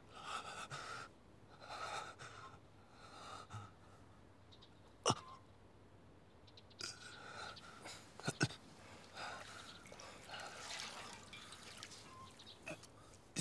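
A young man groans and whimpers in pain close by.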